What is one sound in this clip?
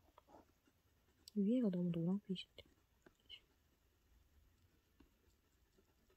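Oil pastel scratches softly across paper.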